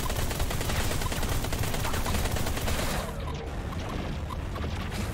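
A spaceship engine hums with a low rumble.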